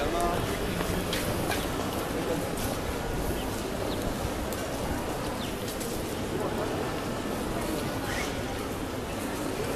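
Footsteps tap on wet paving close by.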